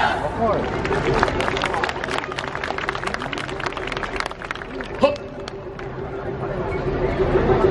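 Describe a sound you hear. A crowd of dancers shouts chants together.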